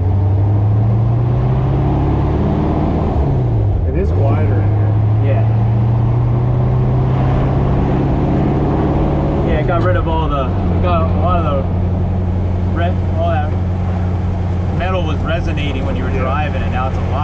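A car engine rumbles steadily and changes pitch as the gears shift.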